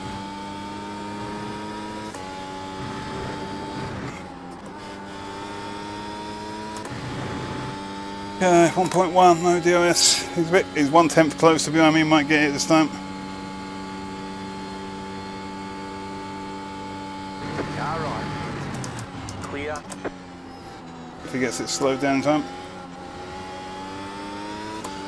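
A racing car engine whines steadily, shifting gears up and down.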